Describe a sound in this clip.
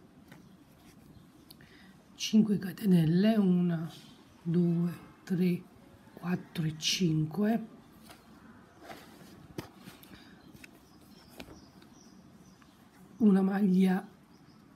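A metal hook softly clicks and rubs against yarn.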